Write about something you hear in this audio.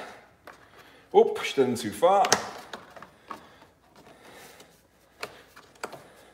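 A plastic frame knocks and clicks as it is pressed into place.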